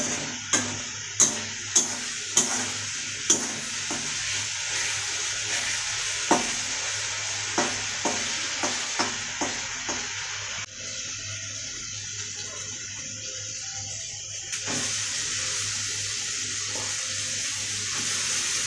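Onions sizzle and fry in hot oil.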